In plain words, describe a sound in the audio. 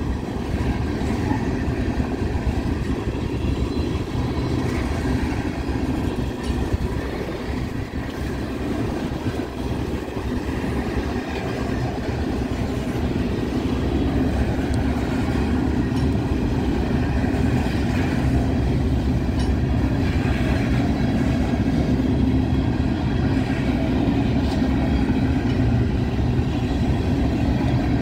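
Freight train wagons rumble past close by.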